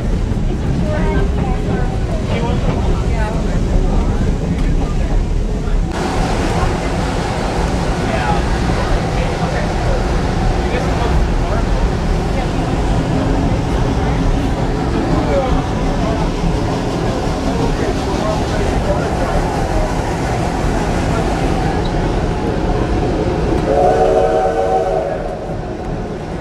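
A train rumbles steadily along its track.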